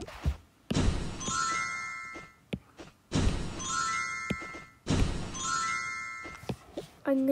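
A cartoonish whooshing poof sounds several times.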